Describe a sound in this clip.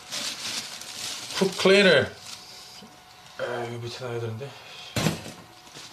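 Loose papers crackle as they are handled.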